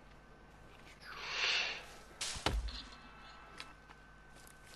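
Leafy plants rustle as they are pulled from the ground.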